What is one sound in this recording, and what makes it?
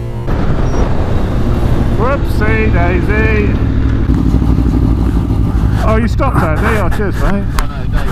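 Another motorcycle rides close by.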